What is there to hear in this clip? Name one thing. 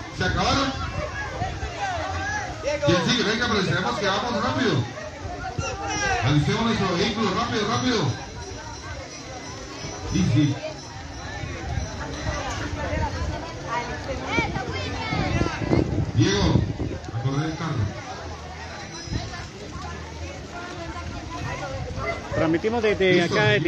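A crowd of men and boys talks and shouts outdoors.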